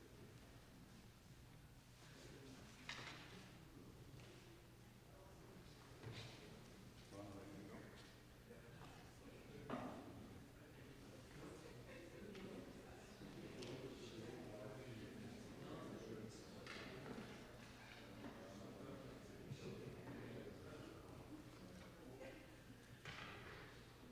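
A man speaks in a large echoing hall.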